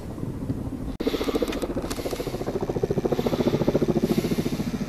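A wildfire roars and crackles.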